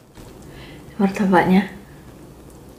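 A young woman speaks briefly and softly, close to a microphone.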